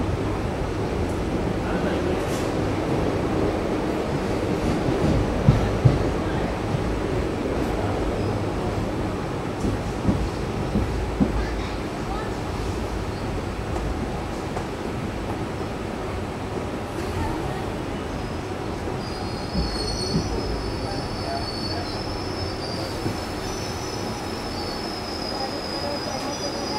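Wind buffets loudly past an open train window.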